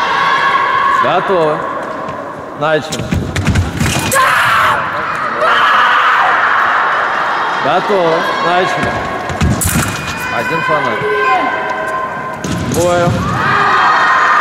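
Young women fencers shout sharply.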